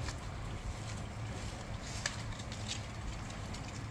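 Soil crumbles and rustles as a plant's root ball is handled.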